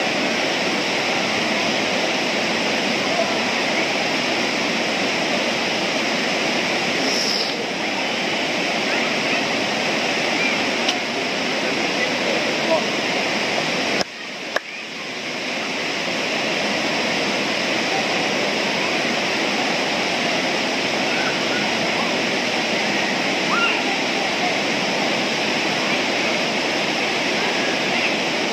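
A river rushes steadily over rocks nearby.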